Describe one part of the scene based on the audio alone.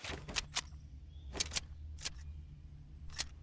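A pistol fires a few sharp shots.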